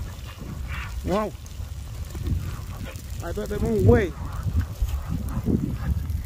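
Flames crackle and hiss as lava burns through grass.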